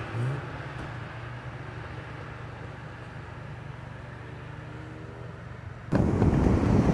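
A sports car engine hums far off at low revs.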